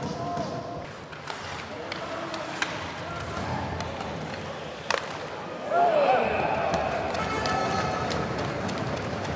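A small crowd murmurs and cheers in a large echoing arena.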